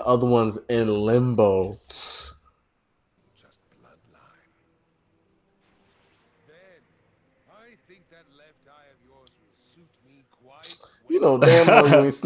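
Young men talk and exclaim excitedly over an online call.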